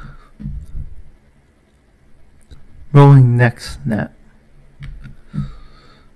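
A young man speaks close to a microphone, with animation.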